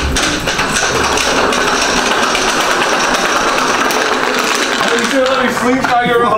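Hoverboard wheels roll and whir across a hard tiled floor.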